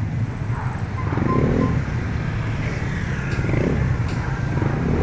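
A motorcycle drives past close by.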